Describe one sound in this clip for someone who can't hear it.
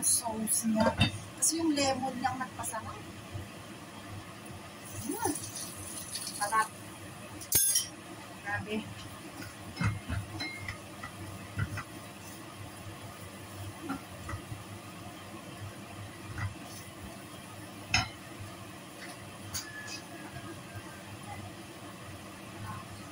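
Food sizzles softly in a hot pan.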